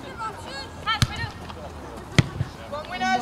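A football is kicked with a dull thump.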